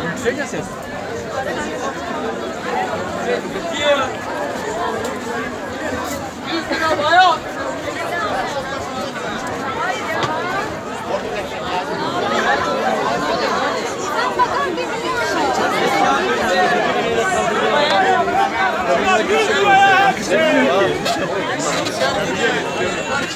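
A large crowd chatters loudly all around outdoors.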